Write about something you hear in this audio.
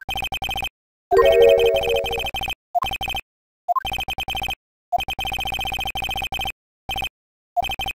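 Rapid electronic blips tick in quick bursts with short pauses.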